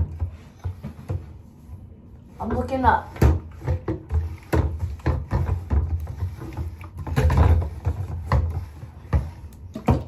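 Full plastic bottles thud and knock on a countertop.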